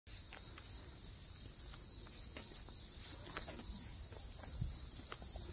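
Footsteps crunch steadily on a dry dirt path.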